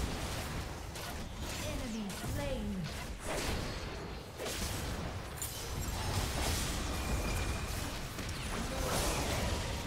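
Game spells whoosh and crackle in quick bursts.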